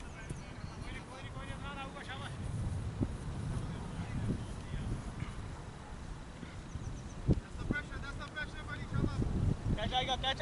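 Men talk and call out to each other outdoors at a distance.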